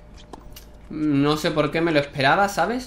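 A young man talks loudly and animatedly into a close microphone.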